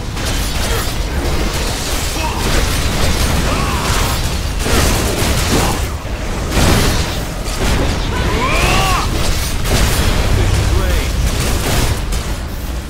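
Magic spells crackle and whoosh in a fast, noisy fight.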